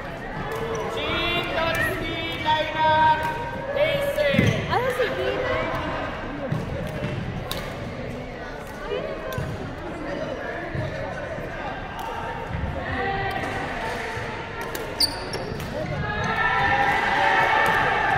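People's voices chatter and call out in a large echoing hall.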